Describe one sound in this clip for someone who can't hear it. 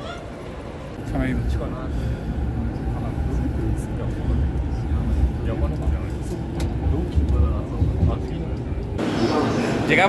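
A train rumbles along steadily.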